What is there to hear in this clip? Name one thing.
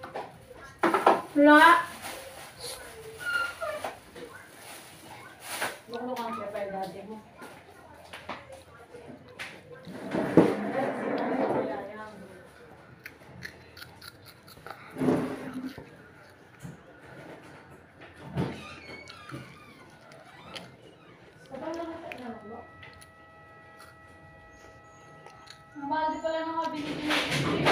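A boy chews and crunches food.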